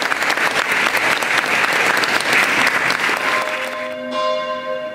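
An audience applauds loudly in an echoing hall.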